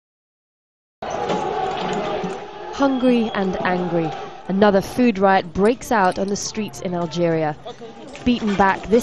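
A crowd clamors and shouts outdoors.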